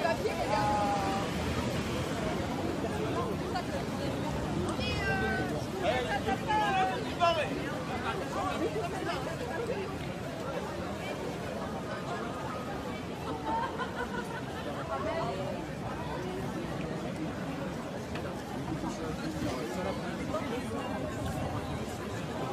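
A large crowd of men and women chatters outdoors all around.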